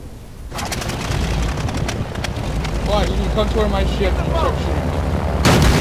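A propeller plane's engine roars steadily.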